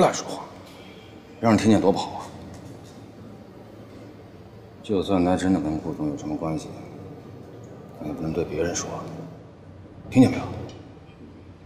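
A man speaks firmly in a low voice, close by.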